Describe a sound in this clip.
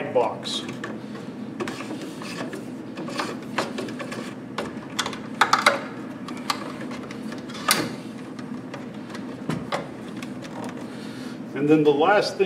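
Electrical cable rustles and taps as it is pulled.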